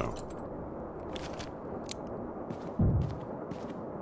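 Footsteps thud slowly across a wooden floor.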